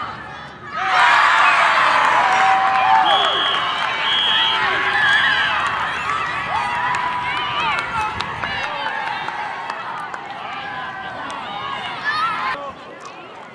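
A crowd of children cheers and shouts excitedly outdoors.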